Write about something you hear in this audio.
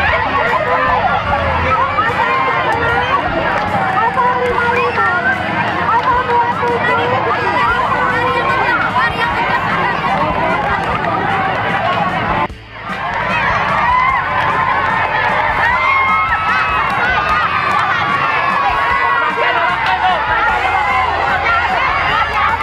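A crowd of children and adults chatters and calls out outdoors.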